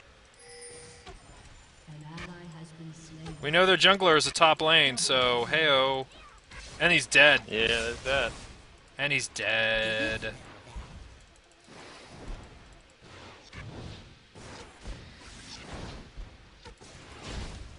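Fantasy spell blasts and weapon hits crackle and zap in quick bursts.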